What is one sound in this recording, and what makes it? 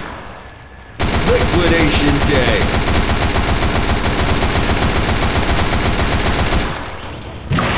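A machine gun fires in rapid, continuous bursts.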